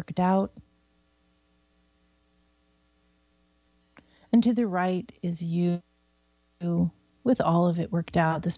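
A woman speaks calmly and clearly into a microphone, with short pauses.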